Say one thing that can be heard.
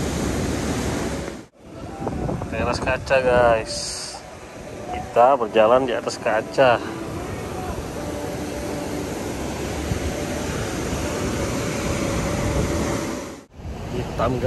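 Waves crash and surge against rocks below.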